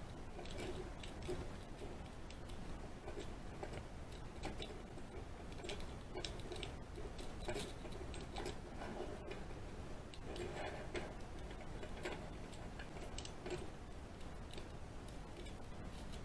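Small metal tools click and scrape inside a lock.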